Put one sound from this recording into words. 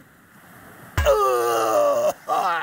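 A heavy thud sounds as a man falls to the ground.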